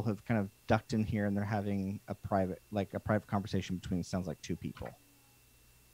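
A man speaks calmly over a headset microphone, heard through an online call.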